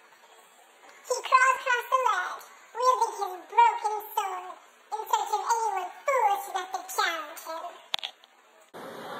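A young boy talks in a high voice close by.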